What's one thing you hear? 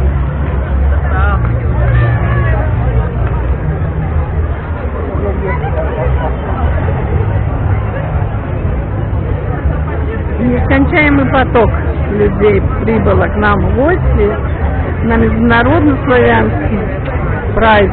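Footsteps of many people shuffle on pavement.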